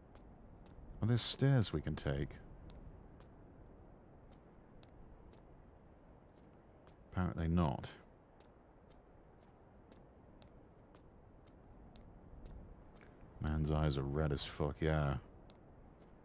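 A young man speaks into a microphone in short bursts.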